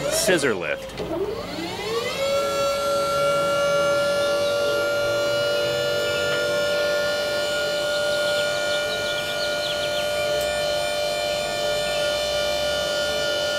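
An electric lift motor hums steadily as a platform rises.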